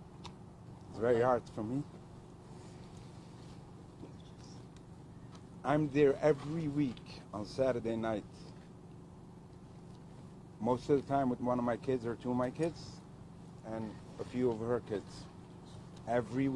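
A man speaks emotionally into microphones outdoors, pausing often.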